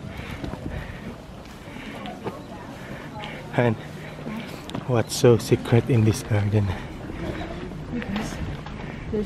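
Footsteps scuff on a paved path outdoors.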